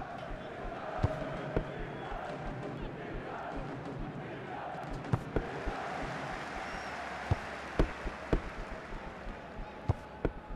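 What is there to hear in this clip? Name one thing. A football is kicked with sharp thumps, now and then.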